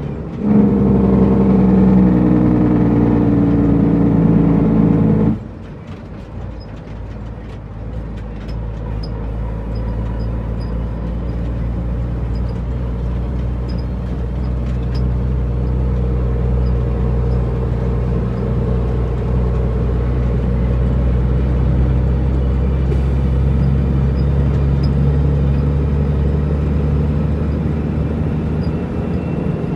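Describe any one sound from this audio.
A large truck engine rumbles steadily and grows louder.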